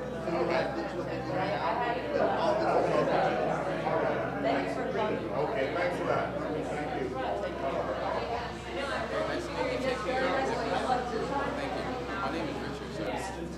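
Several people talk at once close by, in a chattering crowd.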